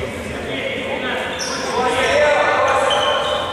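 A ball thuds on a wooden floor in an echoing hall.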